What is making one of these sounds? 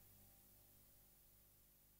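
Gentle waves wash onto a beach.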